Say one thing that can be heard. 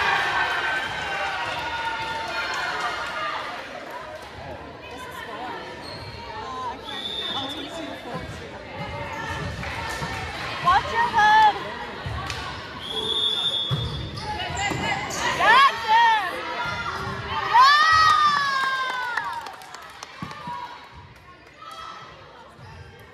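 Teenage girls shout and call out to each other in a large echoing gym.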